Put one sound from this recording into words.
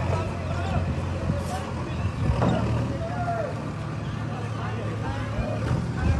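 An excavator engine rumbles nearby.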